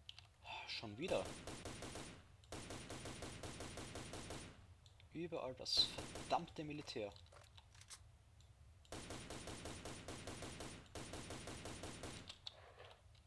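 An automatic rifle fires rapid bursts of shots.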